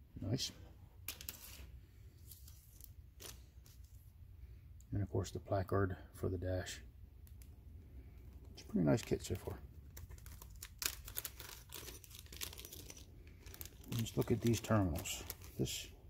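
Plastic bags crinkle and rustle in hands.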